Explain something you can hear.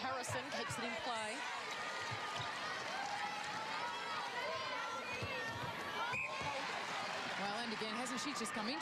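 A large crowd murmurs and cheers in an echoing indoor arena.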